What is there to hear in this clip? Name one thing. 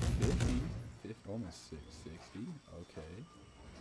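A young man talks into a microphone, close by.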